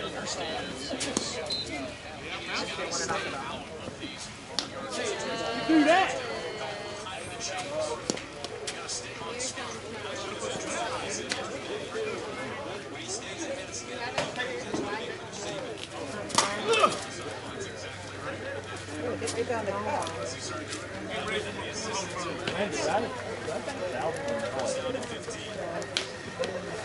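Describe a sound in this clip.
Several men talk and call out across an open field outdoors.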